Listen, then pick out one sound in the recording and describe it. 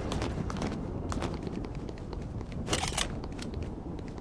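Quick footsteps tap on stone.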